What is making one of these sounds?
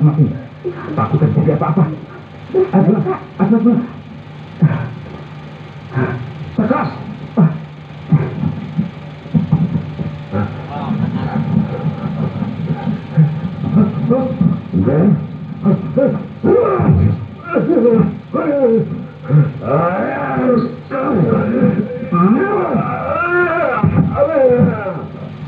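A man's voice shouts and talks loudly through a loudspeaker.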